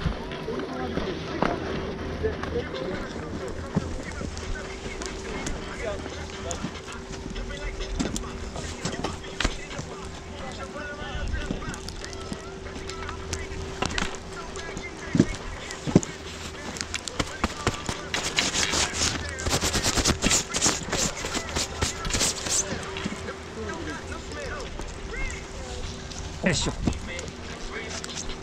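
Skis scrape and crunch over packed snow up close.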